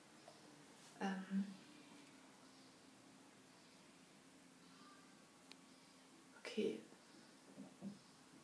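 A woman speaks quietly in short bursts close by.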